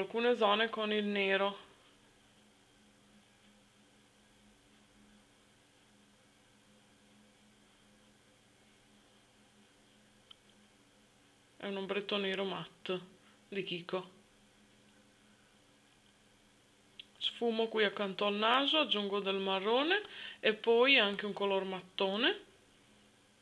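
A woman speaks calmly and close by, in short bursts with long pauses.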